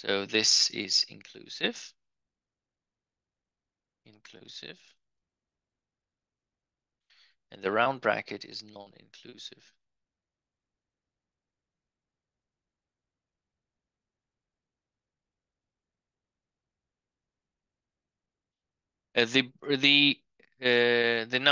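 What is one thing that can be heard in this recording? A man speaks calmly and clearly into a microphone, explaining in pauses.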